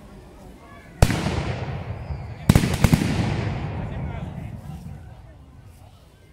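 Muskets fire loud blasts outdoors, each echoing away.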